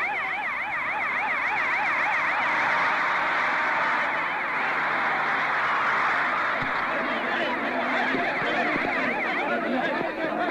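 A siren wails rapidly up and down.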